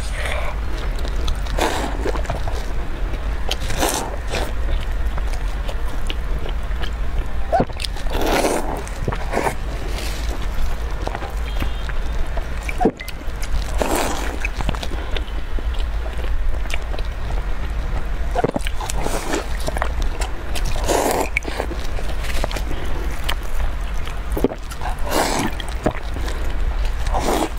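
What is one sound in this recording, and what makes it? Soft bread tears and crackles in gloved hands.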